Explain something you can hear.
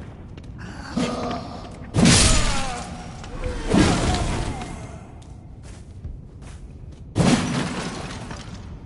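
Heavy weapon blows land with loud crunching impacts.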